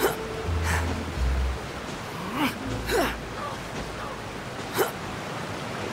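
Footsteps thud on wooden steps.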